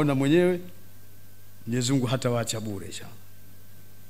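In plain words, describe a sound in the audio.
An elderly man speaks through a microphone in a steady, chanting voice.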